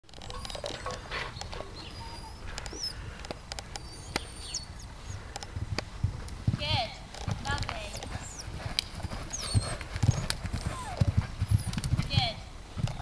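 A horse's hooves thud on soft sand as it canters.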